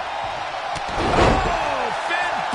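A body slams onto a wrestling mat with a loud thud.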